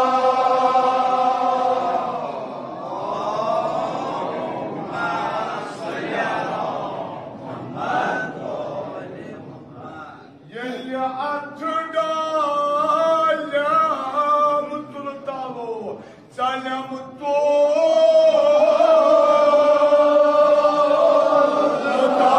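A man chants loudly through a microphone and loudspeaker.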